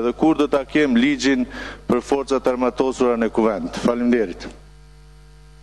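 A middle-aged man speaks steadily into a microphone in a large hall.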